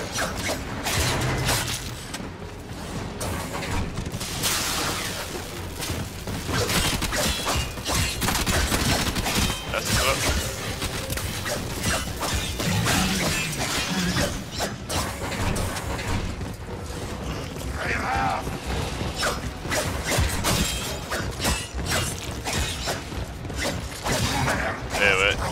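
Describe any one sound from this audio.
Sword blades clash and slash.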